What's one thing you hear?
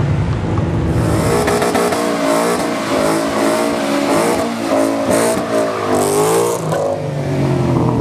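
Tyres squeal on pavement during a burnout.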